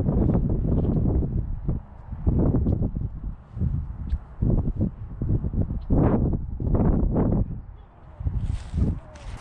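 Wind gusts rumble loudly outdoors.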